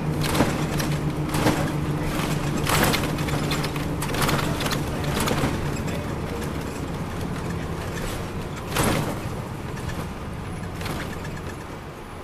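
The cabin fittings of a moving coach bus rattle and creak.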